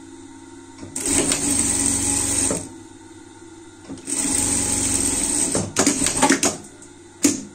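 A sewing machine runs in short, fast bursts.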